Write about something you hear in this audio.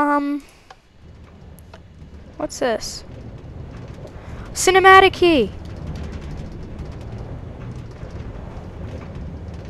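A minecart rumbles steadily along rails.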